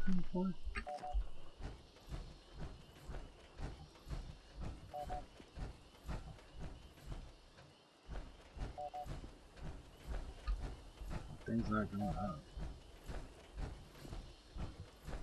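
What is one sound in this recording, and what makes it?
Footsteps tread steadily through dry undergrowth.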